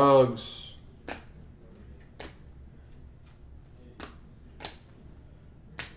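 Trading cards flick and snap as they are shuffled through by hand.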